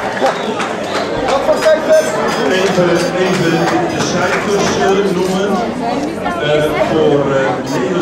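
A man speaks calmly into a microphone over a loudspeaker.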